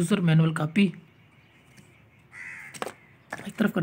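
Paper rustles as a booklet is handled.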